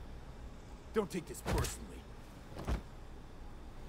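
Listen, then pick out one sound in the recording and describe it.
A heavy blow strikes a man with a dull thud.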